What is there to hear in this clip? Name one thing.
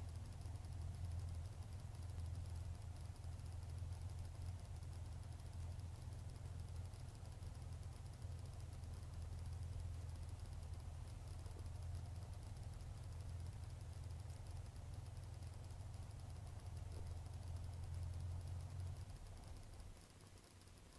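A small propeller engine idles with a low, steady drone, then cuts out.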